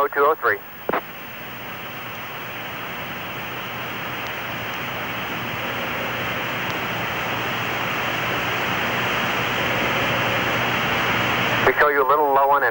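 A jet engine roars steadily and slowly grows louder.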